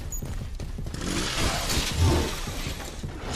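Gunshots ring out.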